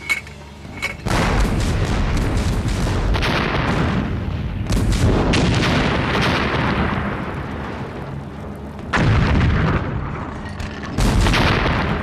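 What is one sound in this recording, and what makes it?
Explosions roar and rumble.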